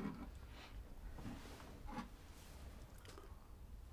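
A woman sips hot tea from a cup.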